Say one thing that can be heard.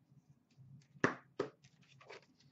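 A plastic puck case clacks onto a glass counter.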